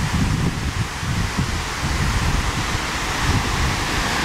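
Fountain water splashes and rushes steadily.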